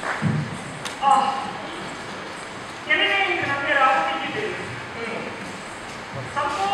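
A woman sings through a microphone on a stage.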